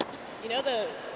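A tennis ball is struck sharply by a racket.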